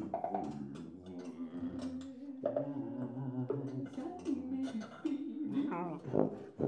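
A brass horn plays low, wavering notes up close.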